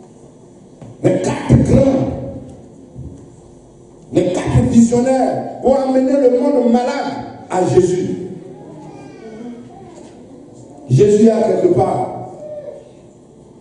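A man preaches loudly and forcefully into a microphone, in short bursts with pauses.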